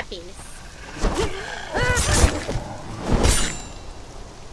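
Blades strike and clash in a brief fight.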